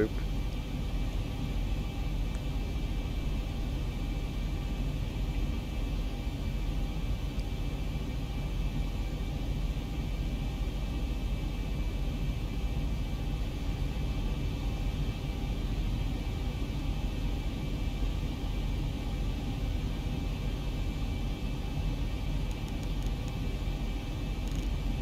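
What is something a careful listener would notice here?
Jet engines hum in a low, steady drone heard from inside an airliner cockpit.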